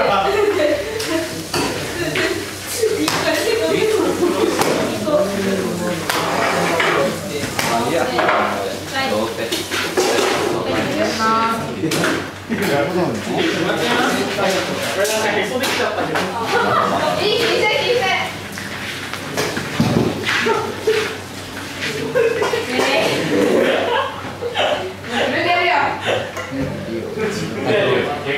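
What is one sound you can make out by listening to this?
Metal bowls clink and clatter on a counter.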